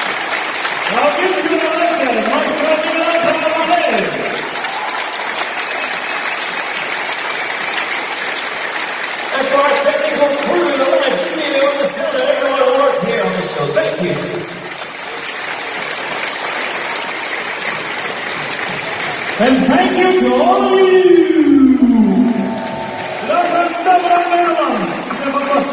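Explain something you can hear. A man sings through loudspeakers.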